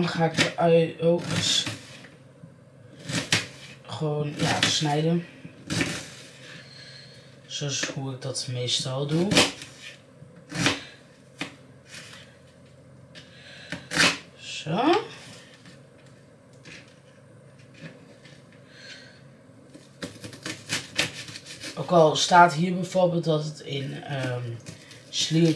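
A knife taps on a cutting board as food is chopped.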